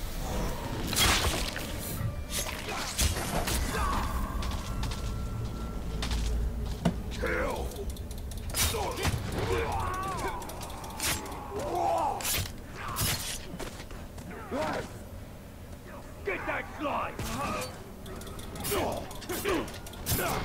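Swords clash and strike.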